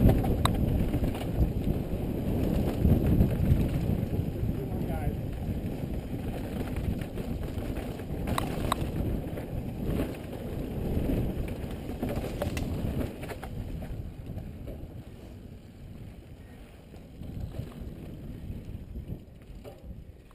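A mountain bike's chain and frame clatter over bumps.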